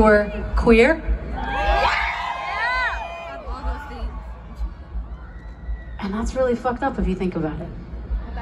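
A young woman sings into a microphone, heard through loudspeakers outdoors.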